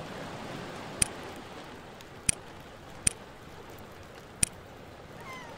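Interface buttons click sharply a few times.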